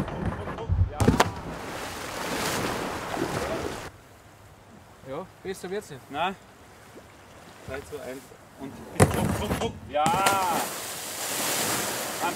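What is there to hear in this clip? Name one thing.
A kayak plunges into water with a loud splash.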